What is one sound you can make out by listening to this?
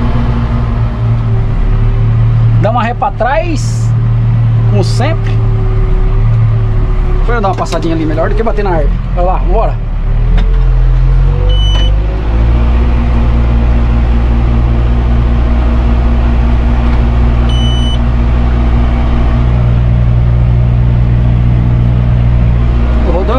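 A tractor engine drones steadily inside the cab.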